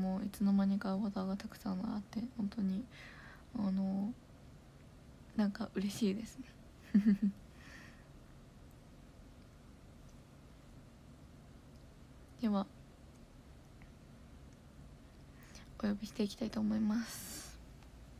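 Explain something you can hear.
A young woman speaks softly and playfully, close to a microphone.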